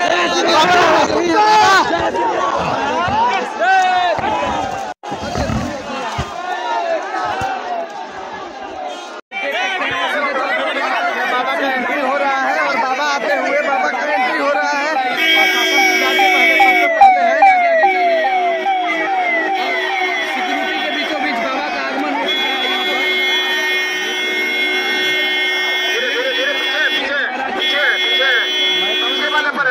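A large crowd shouts and cheers close by, outdoors.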